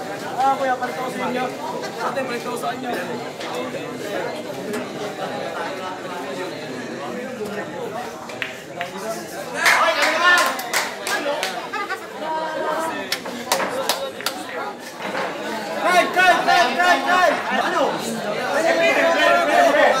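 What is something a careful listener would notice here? A crowd of men and women chatter and call out all around.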